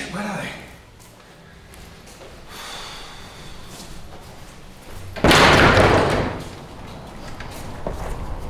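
Footsteps shuffle slowly across a floor.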